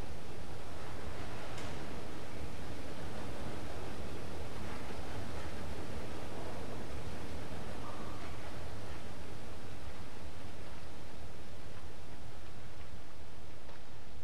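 Small footsteps patter on a hard floor.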